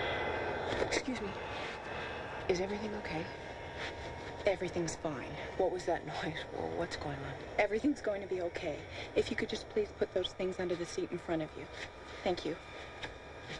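A woman speaks quietly close by.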